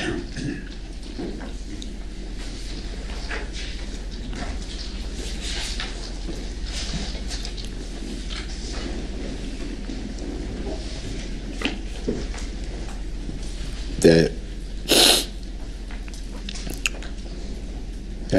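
A man speaks, with pauses.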